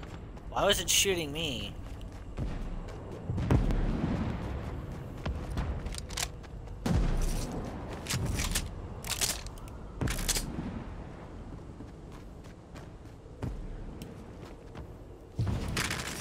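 A young man talks into a microphone in bursts.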